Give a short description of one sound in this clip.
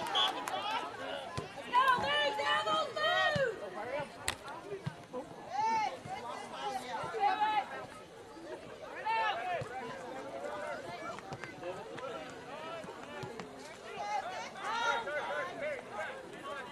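Young women shout and call out to each other across an open field, some distance away.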